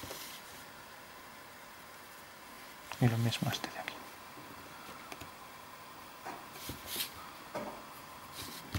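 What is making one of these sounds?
A pencil scratches and scrapes across paper.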